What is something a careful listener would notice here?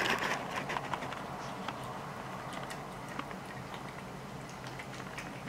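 A cat chews and laps food wetly, up close.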